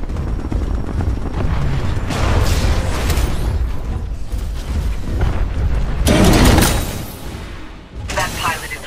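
A heavy robot's machinery whirs and rumbles loudly.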